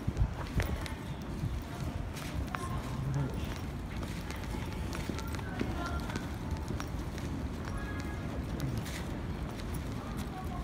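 A city street hums outdoors with a low murmur.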